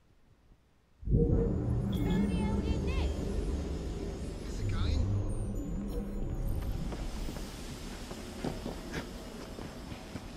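Video game sounds play loudly, with music and effects.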